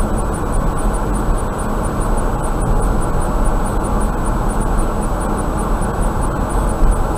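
A car drives steadily along a highway, its tyres rumbling on the road.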